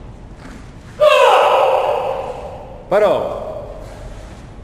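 A man gives loud, short shouts nearby.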